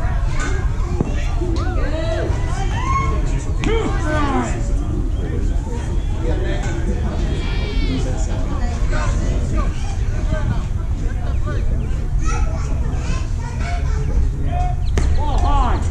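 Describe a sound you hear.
A ball smacks sharply into a catcher's mitt.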